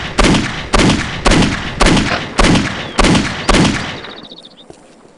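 A pistol fires several quick shots in a row.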